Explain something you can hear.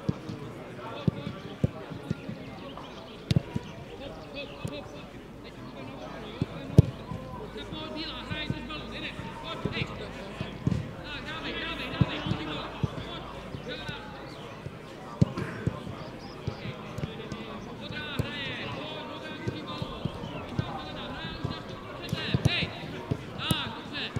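A football is kicked with dull thuds, outdoors.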